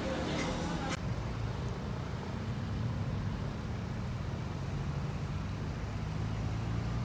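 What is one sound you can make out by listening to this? Traffic rumbles steadily along a road nearby.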